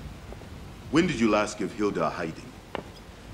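A second man answers calmly in a deep voice.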